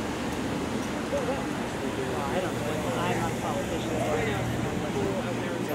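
A second car drives past on the street.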